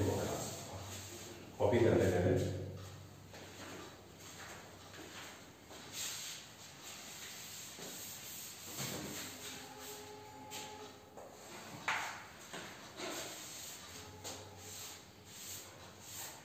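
A duster rubs against a chalkboard.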